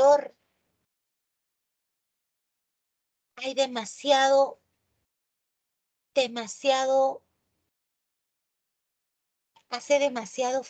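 A woman speaks calmly in short phrases over an online call, with pauses between them.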